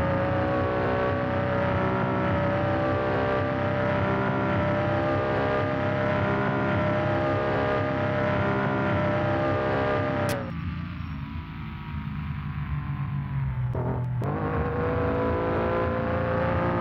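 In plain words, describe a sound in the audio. A car engine drones at high revs, drops away as the throttle is released, then revs up again.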